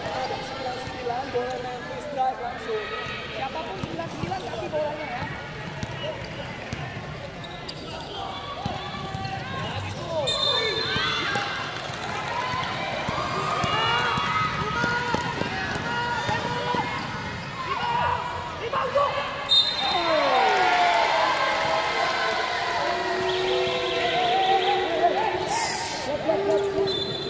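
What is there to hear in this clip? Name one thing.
A crowd of children and adults chatters and shouts in a large echoing hall.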